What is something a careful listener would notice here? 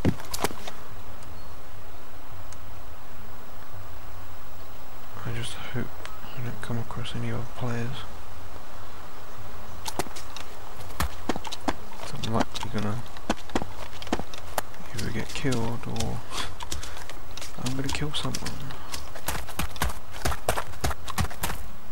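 Footsteps thud quickly as a man runs over ground.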